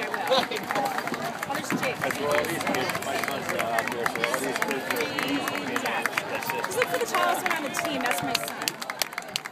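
A large crowd of young people chatters outdoors.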